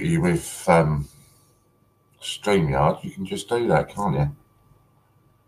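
A middle-aged man speaks calmly and closely into a microphone.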